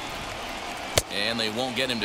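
A pitched baseball smacks into a catcher's mitt.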